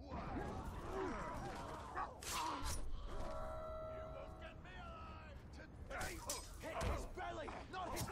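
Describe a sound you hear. Weapons clash and strike.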